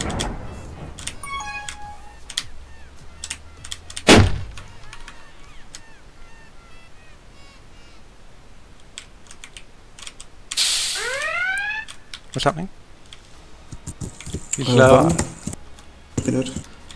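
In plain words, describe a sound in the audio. Short electronic game sounds blip, pop and whoosh now and then.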